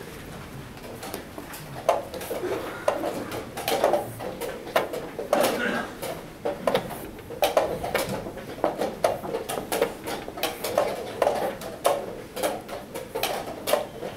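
Chess pieces clack rapidly onto a wooden board.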